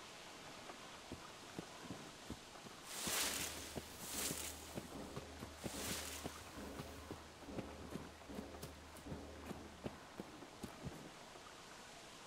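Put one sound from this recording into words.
Footsteps rustle through dry grass and leaves.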